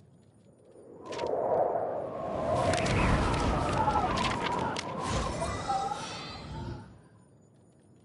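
A shimmering, whooshing chime swells up and slowly fades away.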